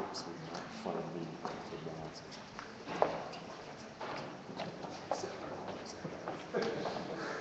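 Low voices of a seated crowd murmur quietly nearby.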